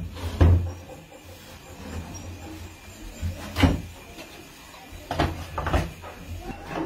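Wooden pieces knock and clatter on a hard surface.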